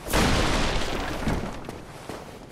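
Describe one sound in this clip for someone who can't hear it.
A heavy wooden door creaks shut with a loud thud.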